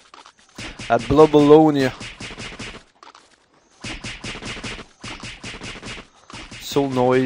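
Rapid weapon strikes land in quick, even bursts.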